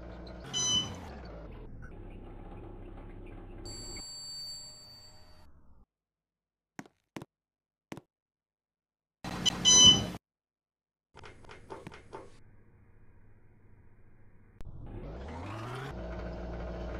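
Elevator doors slide open and shut.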